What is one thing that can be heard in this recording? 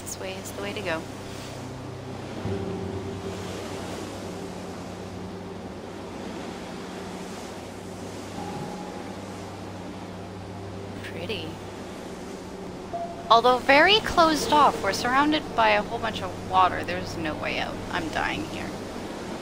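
Sea waves wash gently against a hull.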